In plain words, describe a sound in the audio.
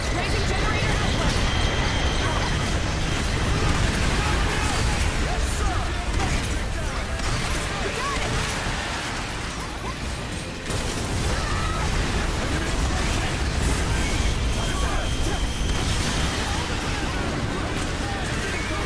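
Explosions boom and rumble continuously.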